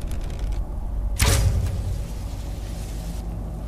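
A bowstring releases an arrow that hits with a sharp crackling magical burst.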